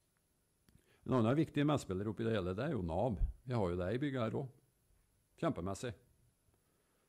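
A middle-aged man speaks calmly into a microphone in a room with a slight echo.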